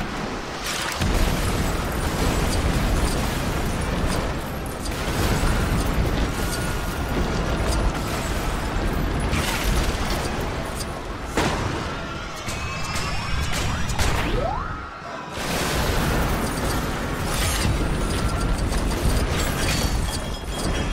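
Loud explosions boom and rumble one after another.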